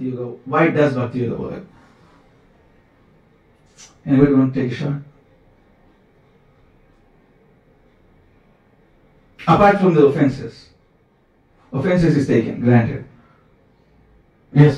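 A young man speaks calmly into a microphone in short phrases with pauses.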